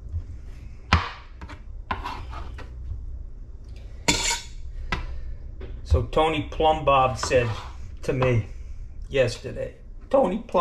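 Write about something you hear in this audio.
A knife cuts through a tomato and taps on a cutting board.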